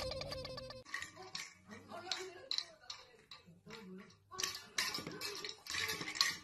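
A spring toy wobbles and rattles as a dog paws it.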